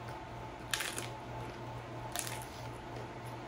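A woman crunches on a crispy taco shell close to a microphone.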